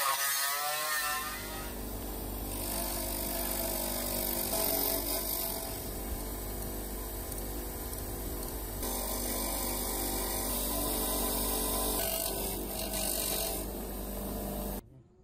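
A bench grinder hums steadily as metal is pressed against its wheel.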